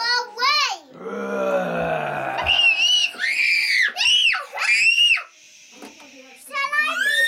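A young girl squeals and shouts excitedly close by.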